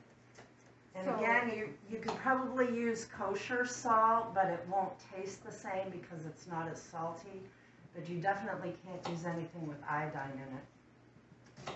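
An older woman speaks calmly to the listener, close by.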